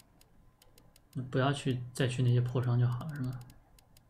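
Soft electronic clicks tick as a menu selection moves.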